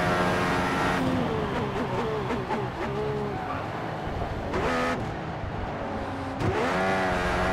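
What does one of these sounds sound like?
A racing car engine drops in pitch as the car brakes hard for a corner.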